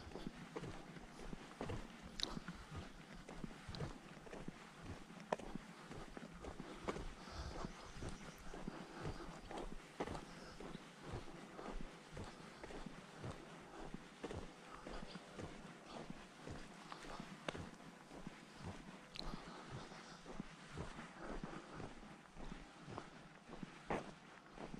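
Footsteps crunch steadily on a rough paved road.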